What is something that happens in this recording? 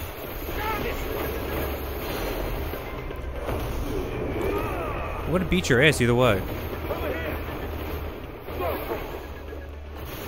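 Magic blasts crackle and explode in rapid bursts.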